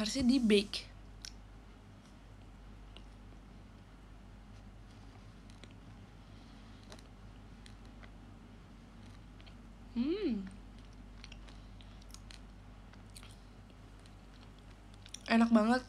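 A young woman chews food with soft mouth sounds.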